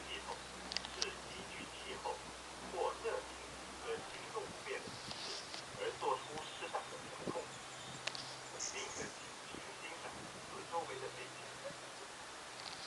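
A cable car hums steadily as it glides along its cable.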